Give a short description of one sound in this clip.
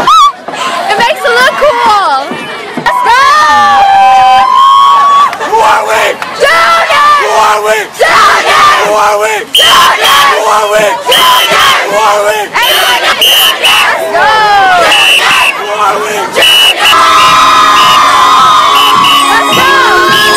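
A crowd of young people cheers and shouts loudly outdoors.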